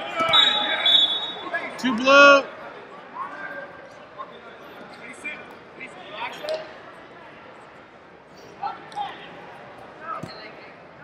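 Men and women shout encouragement from the sidelines in a large echoing hall.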